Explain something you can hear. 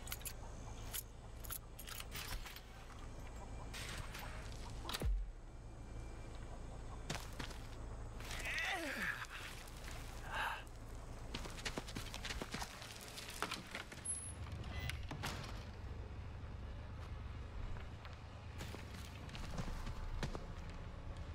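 Footsteps crunch on dirt and wooden boards.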